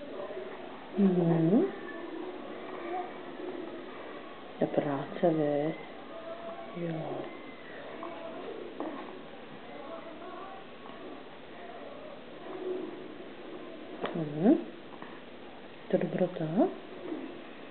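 A baby coos and squeals in short bursts close by.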